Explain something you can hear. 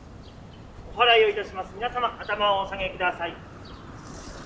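A man chants loudly in a clear voice nearby.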